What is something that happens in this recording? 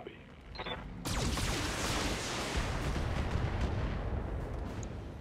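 A laser weapon fires with a rushing roar.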